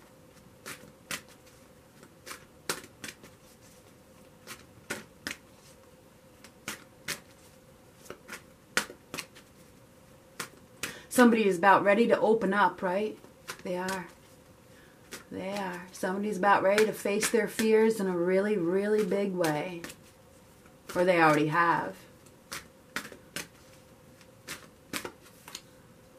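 Playing cards riffle and slap together as they are shuffled close by.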